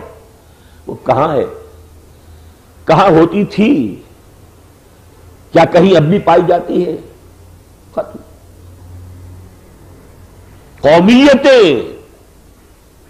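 An elderly man speaks forcefully into a microphone in short bursts with pauses.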